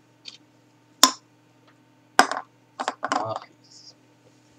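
A metal can knocks down onto a wooden table.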